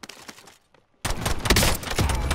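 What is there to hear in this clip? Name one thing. A rifle fires rapid shots up close.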